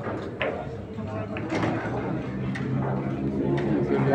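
Pool balls clack together and roll on the table.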